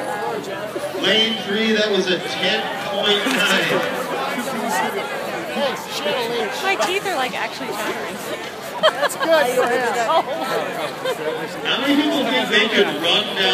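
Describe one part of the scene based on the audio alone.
Men and women shout and whoop with excitement close by.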